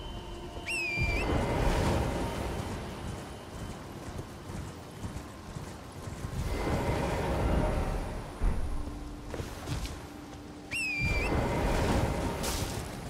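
A magical shimmer rushes and sparkles.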